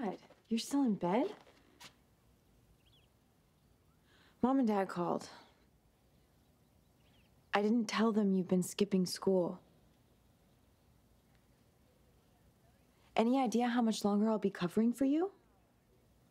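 A young woman speaks in a serious, low voice close by.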